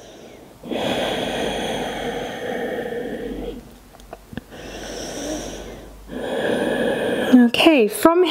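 A woman breathes in and out deeply and slowly, close by.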